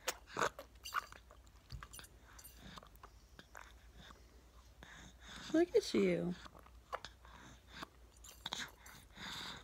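A baby sucks and gulps from a cup with soft wet clicks.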